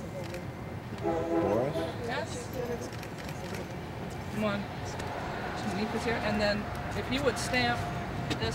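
A man speaks cheerfully nearby, outdoors.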